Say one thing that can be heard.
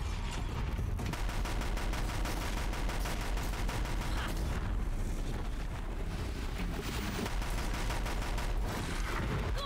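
Explosions and gunfire burst in quick succession.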